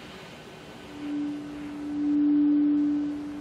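A saxophone plays a long, steady note.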